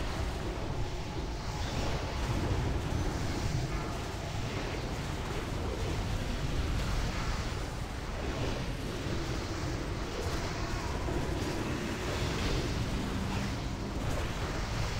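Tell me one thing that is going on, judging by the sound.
Game spell effects whoosh and crackle in a battle.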